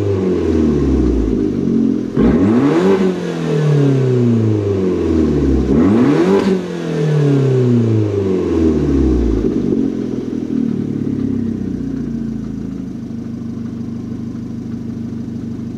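A small car engine revs hard several times with a deep rasping exhaust, then settles to a steady idle.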